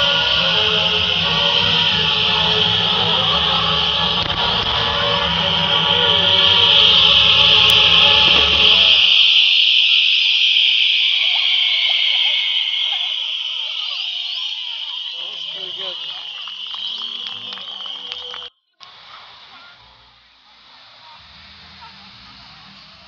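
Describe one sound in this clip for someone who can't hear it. Firework fountains hiss and spray steadily.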